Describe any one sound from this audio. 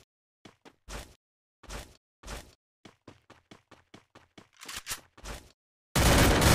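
Quick footsteps run across grass.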